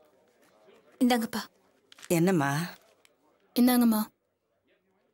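A woman speaks loudly and with feeling, close by.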